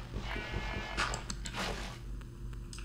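Water splashes as a bucket is poured out.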